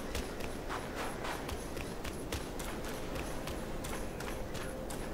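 Footsteps crunch rapidly through snow.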